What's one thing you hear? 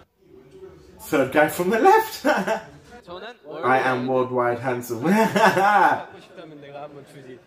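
A young man laughs, close to a microphone.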